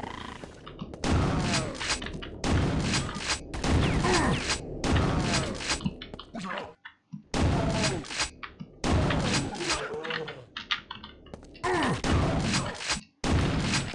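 Gunfire blasts out in loud, rapid bursts from a game.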